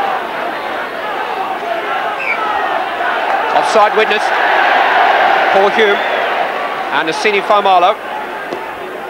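A large crowd roars and cheers outdoors.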